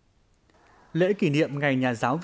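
A woman speaks to a group of children.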